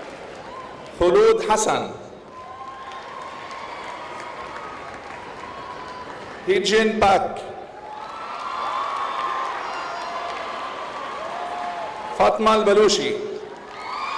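A crowd cheers and whoops loudly in a large hall in short bursts.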